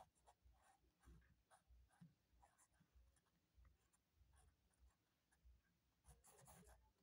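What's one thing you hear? A pen scratches and taps on paper.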